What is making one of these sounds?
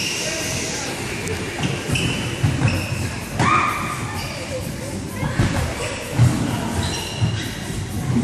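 Children shout and squeal in an echoing hall.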